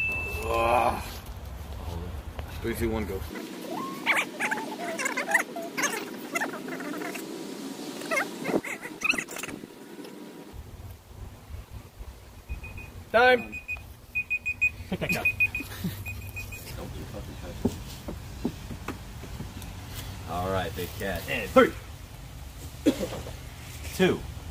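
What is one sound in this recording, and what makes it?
Several men talk and laugh close by.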